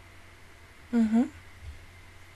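A young woman makes a brief hum close to a microphone.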